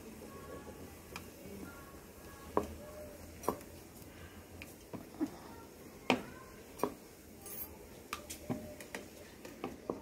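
Dough is slapped and patted by hand.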